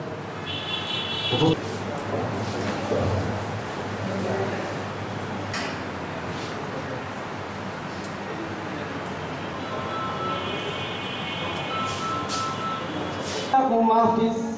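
A large indoor crowd murmurs softly.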